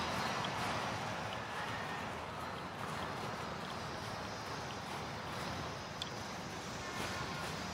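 Wind blows steadily outdoors in the open.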